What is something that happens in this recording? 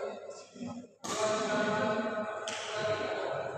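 A badminton racket strikes a shuttlecock.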